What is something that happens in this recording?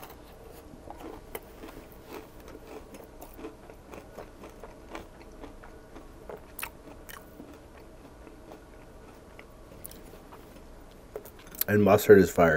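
A man chews food with wet, smacking sounds close to a microphone.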